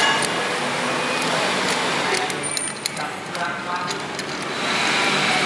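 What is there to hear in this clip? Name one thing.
A plastic car part clicks and knocks as hands turn it.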